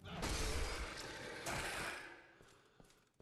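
A fiery blast roars and crackles, then dies away.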